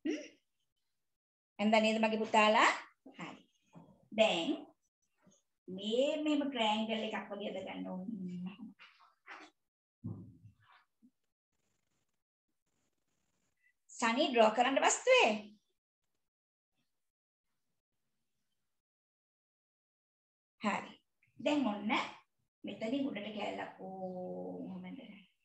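A woman speaks calmly close by, in pauses.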